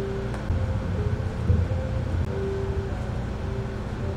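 A metal scoop scrapes and thumps ice cream onto a plate.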